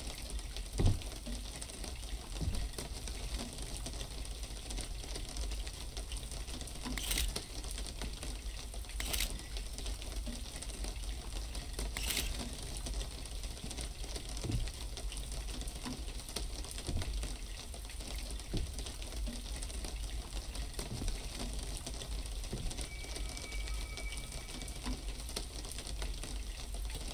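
Rain falls steadily outside.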